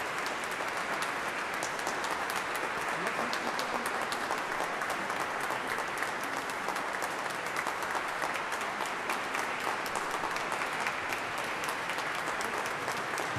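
An audience applauds loudly in a large echoing hall.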